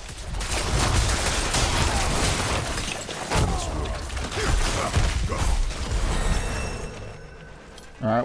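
Fighting sound effects crash and burst rapidly, with heavy thuds and whooshing blasts.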